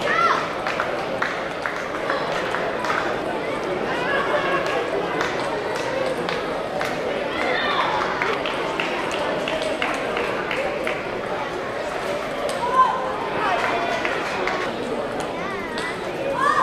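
A ping-pong ball clicks sharply back and forth off bats and tables.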